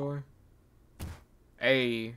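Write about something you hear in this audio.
A game's rank stamp lands with a sharp thud.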